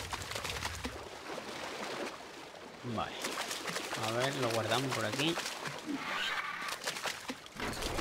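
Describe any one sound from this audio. A creature's feet splash quickly through shallow water.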